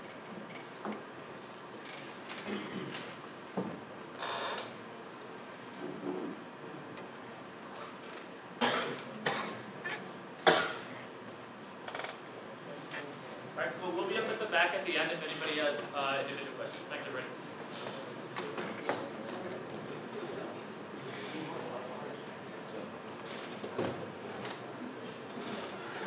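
An audience murmurs and shuffles in a large echoing hall.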